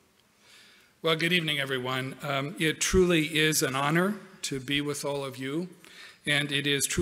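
A man speaks calmly into a microphone over loudspeakers in a large hall.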